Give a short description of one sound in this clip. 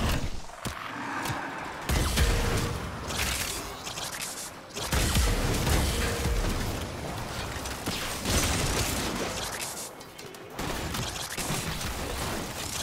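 Heavy weapon blasts and impacts boom again and again.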